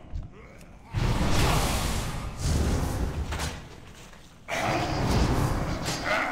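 Game weapons and spells crash loudly in a fight.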